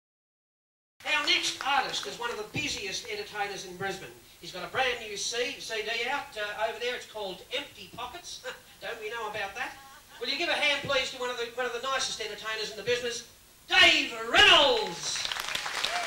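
A man speaks with animation through a microphone on a stage.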